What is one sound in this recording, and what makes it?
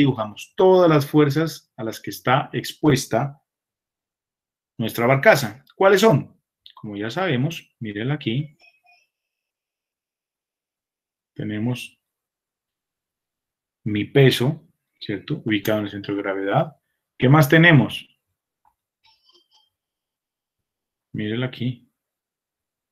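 A man speaks calmly through an online call, in short phrases with pauses.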